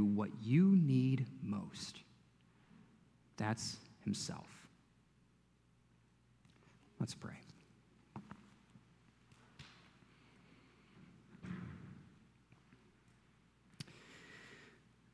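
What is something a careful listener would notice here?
A man speaks calmly through a microphone in a large echoing room, with pauses.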